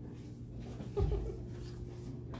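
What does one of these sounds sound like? A woman laughs softly nearby.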